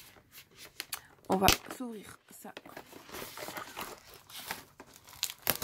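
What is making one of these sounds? Plastic packaging crinkles and taps as hands handle it.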